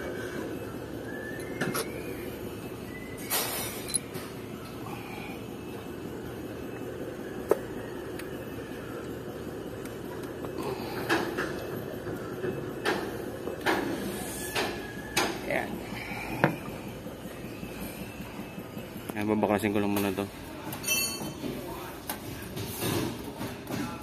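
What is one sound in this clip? Metal parts clink and knock as a hand handles them.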